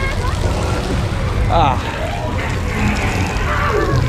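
Water sprays and splashes.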